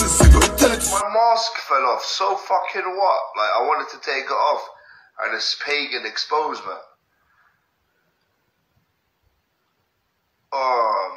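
A young man speaks with animation close to a phone microphone.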